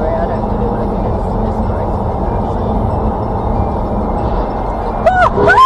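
Road noise rumbles steadily from inside a car at speed.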